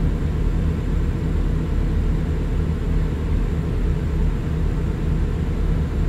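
A truck engine drones steadily at low pitch from inside the cab.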